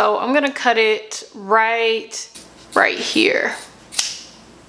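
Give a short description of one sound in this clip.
A young woman speaks calmly, close to a clip-on microphone.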